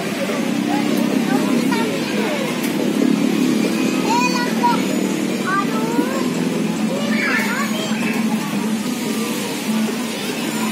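Children chatter and shout nearby outdoors.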